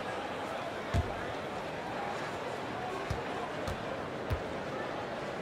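A basketball bounces on a hardwood floor a few times.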